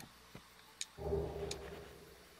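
A soft chime rings out as an item is picked up.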